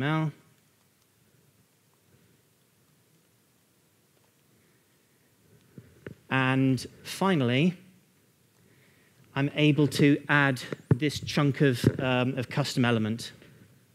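A man lectures calmly to an audience.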